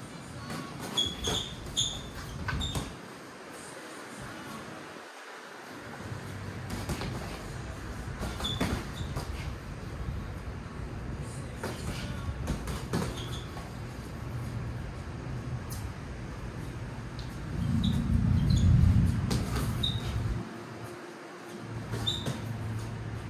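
Sneakers squeak and shuffle on a hard floor.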